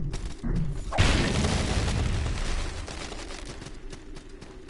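A magic spell bursts with a loud rushing whoosh that slowly fades.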